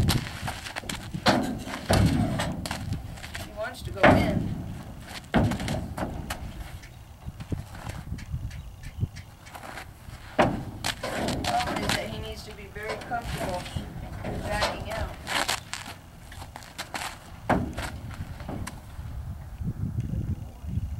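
A horse's hooves step on packed dirt.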